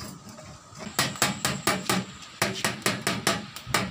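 A stick scrapes and taps inside a metal stove.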